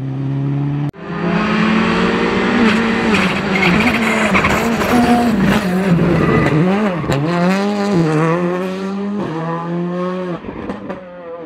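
A second rally car engine roars and revs as it approaches and passes close by.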